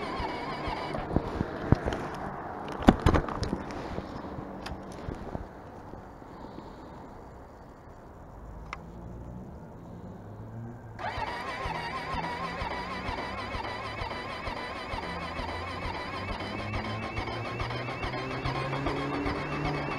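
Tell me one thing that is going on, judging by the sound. A motorcycle engine rumbles and revs while riding.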